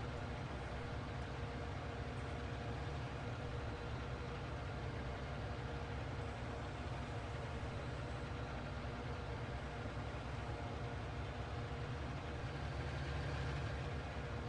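A mower whirs as it cuts grass.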